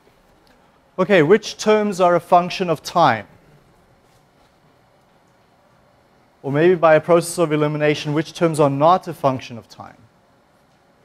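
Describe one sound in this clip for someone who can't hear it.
A man speaks in short bursts with pauses between them.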